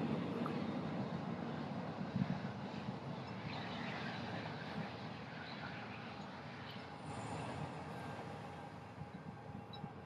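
A diesel locomotive idles nearby with a steady low rumble.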